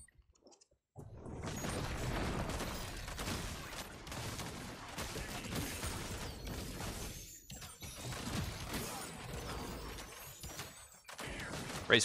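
Energy weapons fire and blast in rapid bursts.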